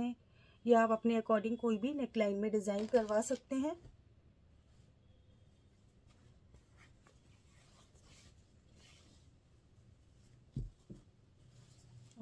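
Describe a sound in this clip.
Fabric rustles softly as hands handle it.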